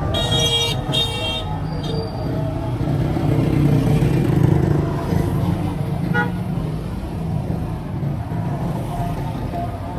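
A motorcycle engine passes on a street.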